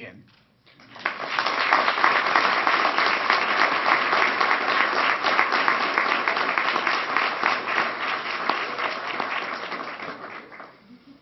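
A large audience applauds in a big room.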